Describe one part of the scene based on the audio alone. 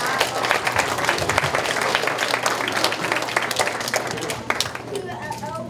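A group of children and adults clap their hands.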